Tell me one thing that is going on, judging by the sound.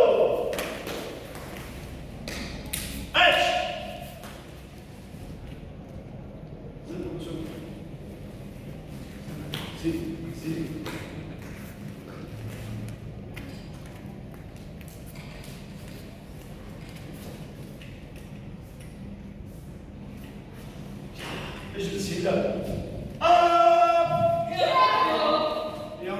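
Bare feet thump and slide on a mat.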